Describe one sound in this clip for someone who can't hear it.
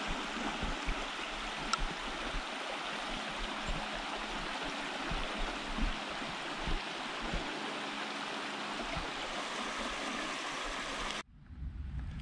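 A stream trickles softly over stones.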